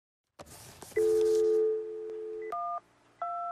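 A telephone dial tone hums steadily.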